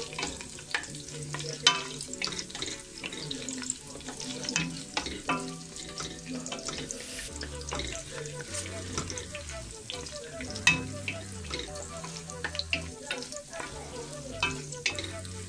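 Food sizzles and crackles in hot oil in a pot.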